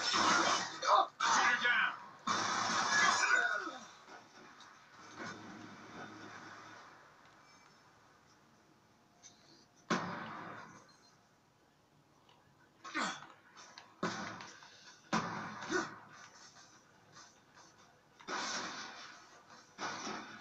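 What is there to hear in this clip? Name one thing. Gunfire bursts from a video game play through a television speaker.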